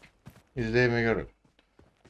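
Footsteps crunch quickly over grass.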